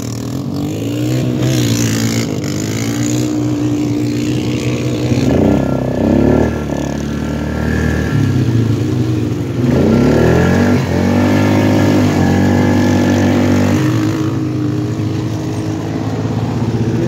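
An all-terrain vehicle engine runs loudly up close, revving up and down.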